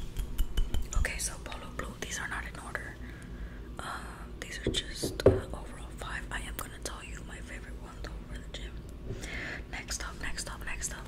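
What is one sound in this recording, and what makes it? A young woman whispers softly close to a microphone.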